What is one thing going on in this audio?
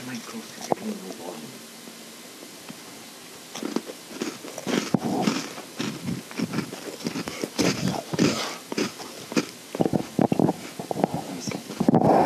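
A pickaxe chips and breaks stone blocks with quick, dry knocks.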